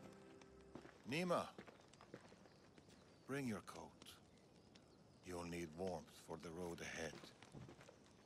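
An elderly man speaks calmly and warmly, close by.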